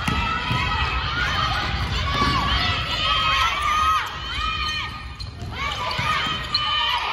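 Young girls shout and call out together in a large echoing hall.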